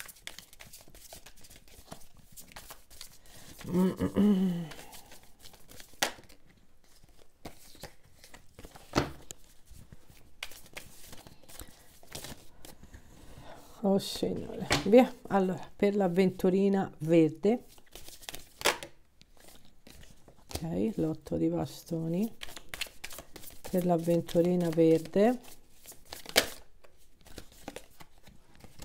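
Playing cards riffle and slap softly as they are shuffled by hand.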